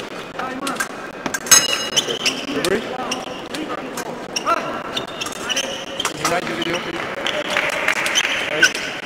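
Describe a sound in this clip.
Fencers' feet thud and squeak on the floor.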